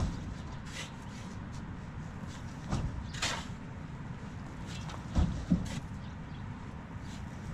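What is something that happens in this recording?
A shovel scrapes and digs into dry dirt.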